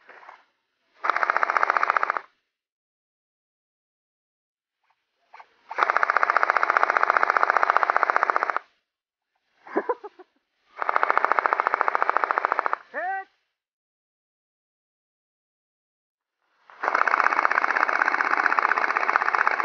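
A paintball gun fires in long, rapid bursts close by.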